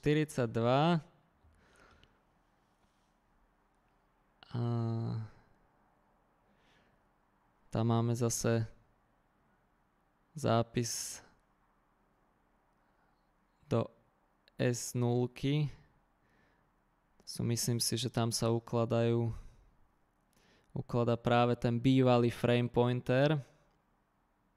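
A man speaks calmly in bursts through a close microphone, with pauses between phrases.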